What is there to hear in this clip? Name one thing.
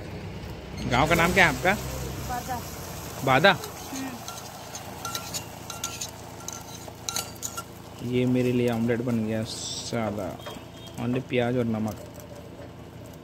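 Egg batter sizzles on a hot griddle.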